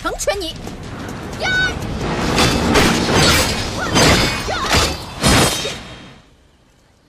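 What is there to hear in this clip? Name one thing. Swords clash and whoosh in a fight.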